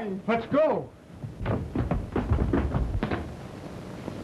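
Men scuffle with dull thuds and bumps.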